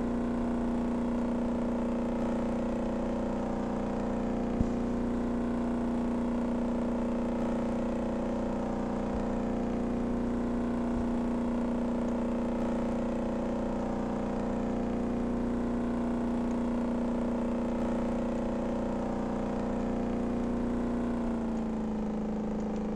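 A boat's engine drones steadily at high speed, then eases slightly near the end.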